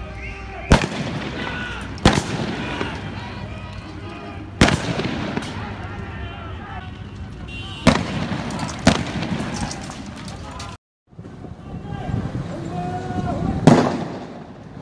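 Loud explosions bang sharply every few seconds, echoing outdoors.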